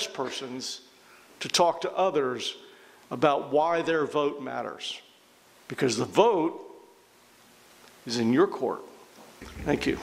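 A middle-aged man speaks calmly through a microphone in a room with some echo.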